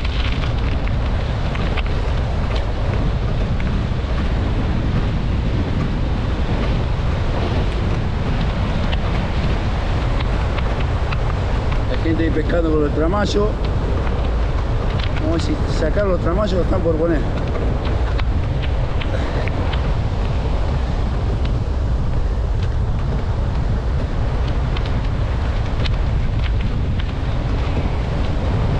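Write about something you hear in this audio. Wind blows hard and rumbles across the open air.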